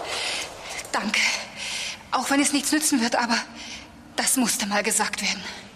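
A young woman speaks urgently and with emotion, close by.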